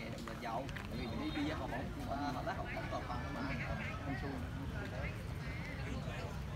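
Young women chat casually as they walk past close by.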